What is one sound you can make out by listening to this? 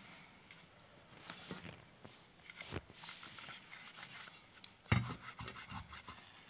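A stiff brush scrubs inside a metal carburettor bore.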